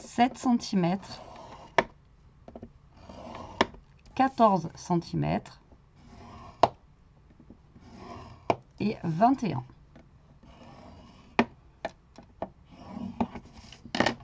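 A bone folder scrapes along paper.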